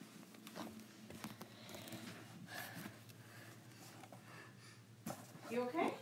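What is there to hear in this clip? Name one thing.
Bare feet step softly on a wooden floor.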